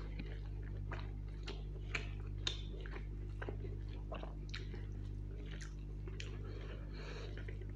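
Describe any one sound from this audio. Fingers squelch through saucy rice on a plate.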